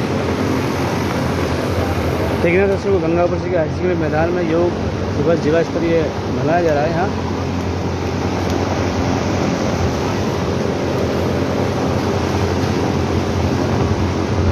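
A middle-aged man talks close by, speaking with animation.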